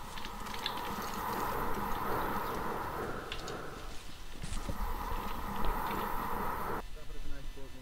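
A smoke grenade hisses steadily.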